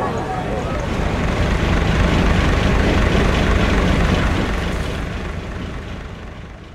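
A boat engine rumbles low and steady.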